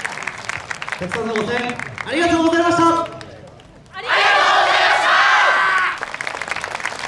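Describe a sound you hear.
A group of young men and women chant loudly in unison outdoors.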